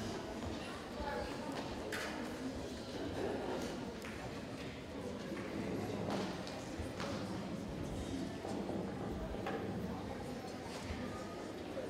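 A string orchestra plays steadily in a large, echoing hall.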